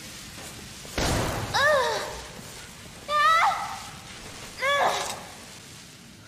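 An electric spell crackles and zaps in short bursts.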